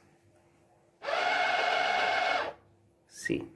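A soap dispenser's motor whirs briefly as it pumps out soap.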